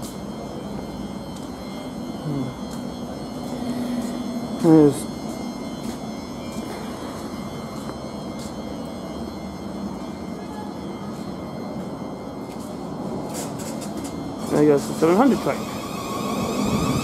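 A diesel train idles with a steady low rumble nearby.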